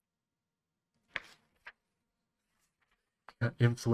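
A paper page turns with a rustle.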